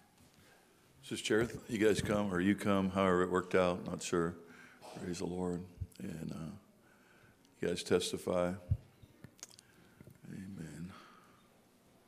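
A middle-aged man speaks with animation into a microphone in a large room.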